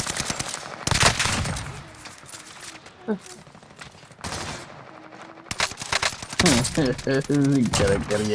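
Rapid gunshots crack loudly in bursts.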